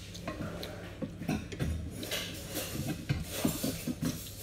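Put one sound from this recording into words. Fingers mix rice on a plate.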